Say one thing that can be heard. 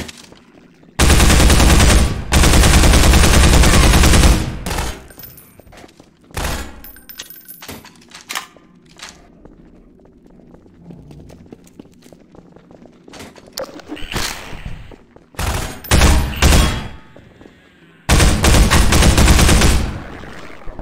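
A gun fires in loud, rapid bursts.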